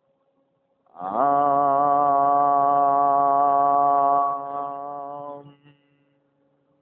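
A man chants one long, steady tone that fades at the end.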